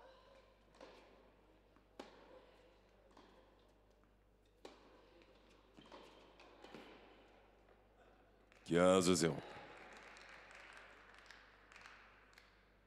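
A tennis ball is struck sharply back and forth with rackets in a large echoing hall.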